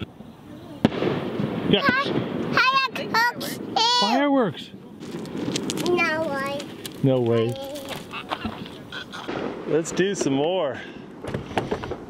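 A toddler boy babbles and talks excitedly close by.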